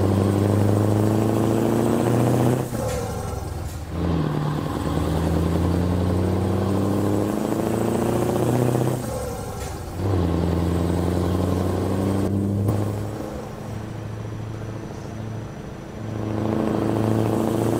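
A truck's diesel engine drones steadily, changing pitch as gears shift.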